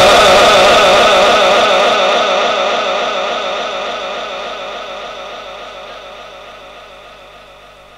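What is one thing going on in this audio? A man chants a long held, wavering note into a microphone, slowly fading.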